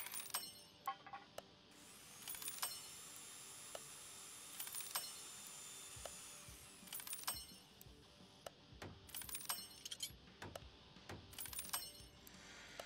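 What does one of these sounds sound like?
Short electronic clicks sound again and again.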